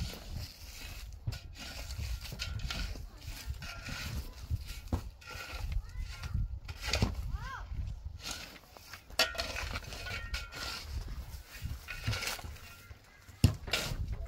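A hoe scrapes and chops into dry soil.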